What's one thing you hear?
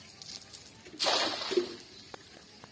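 A cast net splashes onto the surface of water.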